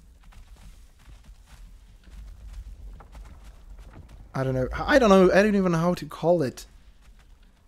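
Footsteps thud softly on a stone floor.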